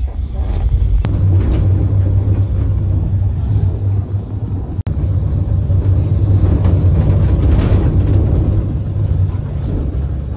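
An engine rumbles loudly from inside a moving bus.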